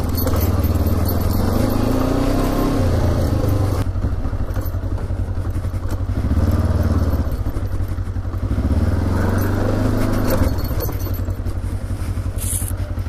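A motorcycle engine rumbles steadily and revs up and down.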